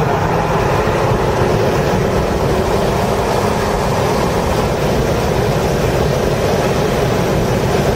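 A race car engine roars loudly at high revs, heard from inside the car.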